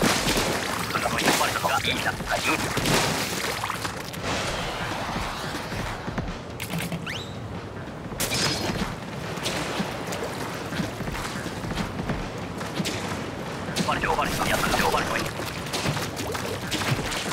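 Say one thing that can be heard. Liquid splatters and sprays in quick bursts.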